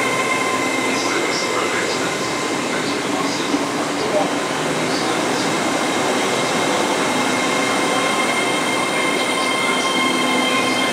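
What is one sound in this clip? A train's engine hums steadily.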